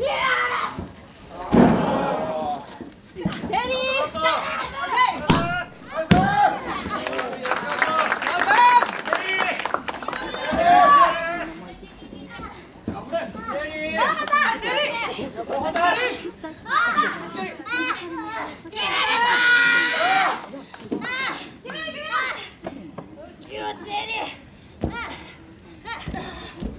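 Young women grunt and shout as they wrestle.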